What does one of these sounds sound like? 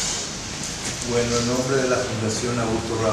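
A second elderly man speaks into a microphone.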